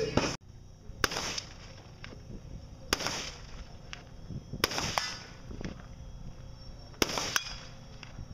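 Shotguns fire single loud shots outdoors, some way off.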